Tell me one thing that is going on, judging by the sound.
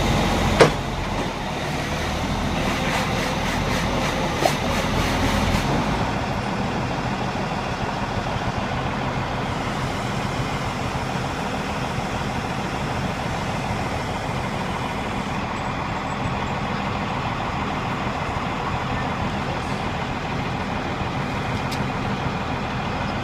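A steel barge slides off a trailer into shallow water.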